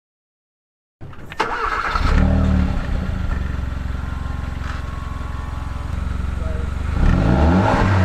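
A car engine starts up and idles with a deep exhaust rumble, heard up close.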